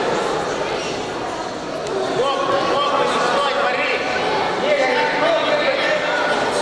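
A crowd of spectators talks and calls out indoors.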